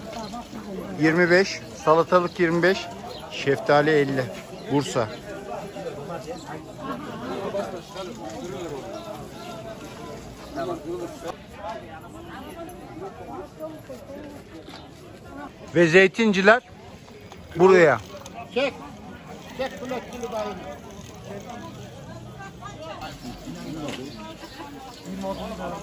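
A crowd of shoppers murmurs in the background outdoors.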